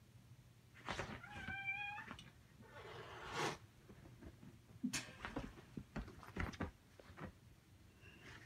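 Dogs scuffle playfully on rustling bedding.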